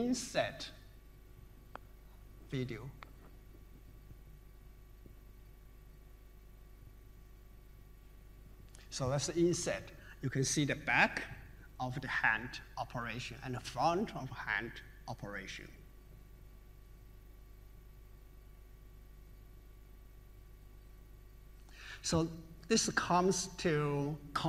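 A man speaks calmly through a microphone in a large hall, with pauses.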